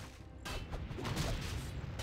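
A fireball bursts with a loud whoosh.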